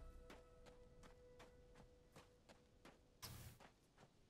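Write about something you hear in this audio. Footsteps crunch steadily on dry ground.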